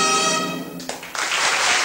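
A choir holds a final sung chord that breaks off.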